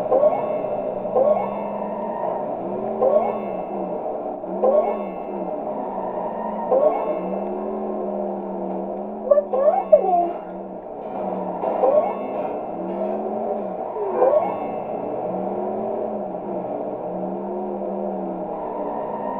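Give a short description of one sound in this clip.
A car engine hums steadily as a car races along.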